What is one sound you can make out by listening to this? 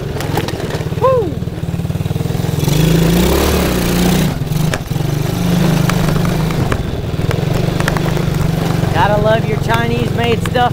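A lawn mower engine runs with a steady low drone.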